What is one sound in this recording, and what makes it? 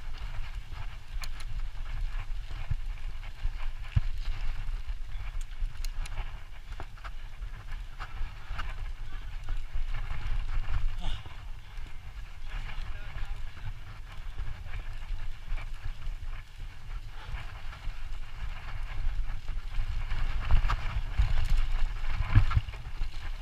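Bicycle tyres roll and bump over grass and dirt.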